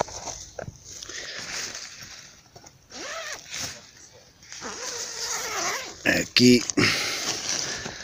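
Tent fabric rustles and crinkles as a hand pushes through it.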